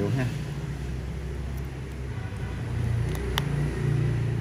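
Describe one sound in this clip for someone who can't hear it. A metal watch clasp clicks and rattles softly.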